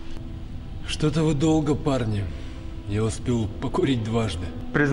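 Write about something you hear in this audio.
A young man speaks impatiently, close by.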